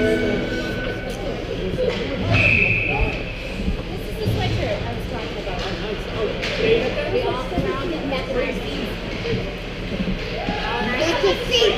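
Hockey sticks clack against a puck and the ice.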